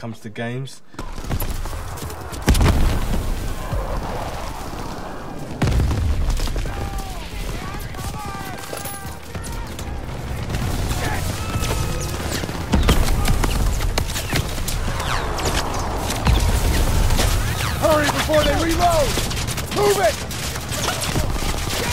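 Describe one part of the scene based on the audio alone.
Gunfire crackles steadily in the background.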